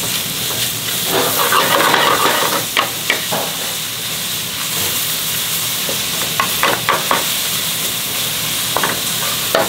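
A wooden spoon scrapes and knocks against a metal pot.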